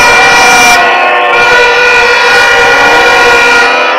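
A plastic horn blares loudly.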